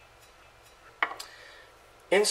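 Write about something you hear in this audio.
A metal fitting clinks against a table.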